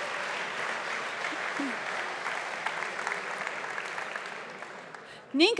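An audience applauds in a large hall, and the clapping slowly fades.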